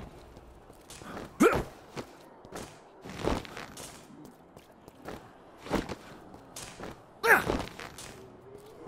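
Footsteps run across concrete.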